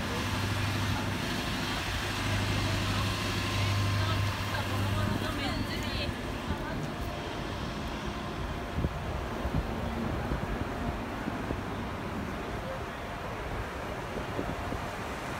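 City traffic rumbles past steadily.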